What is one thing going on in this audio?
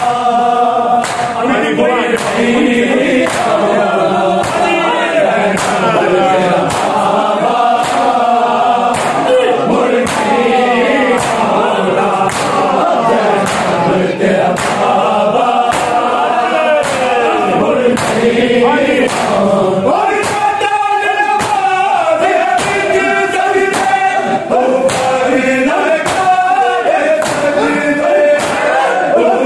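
A crowd of men chants loudly together in an echoing room.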